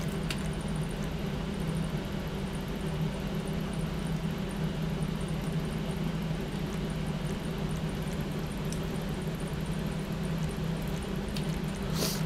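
A car engine idles with a steady low hum.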